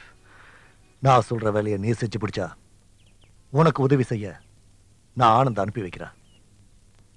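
A man speaks in a low, menacing voice close by, in short bursts.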